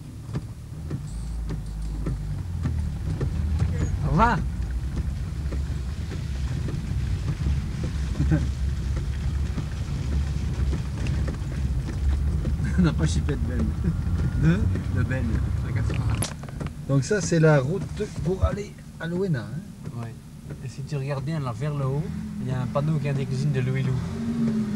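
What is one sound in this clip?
A vehicle engine rumbles low and steadily as it drives along a rough road.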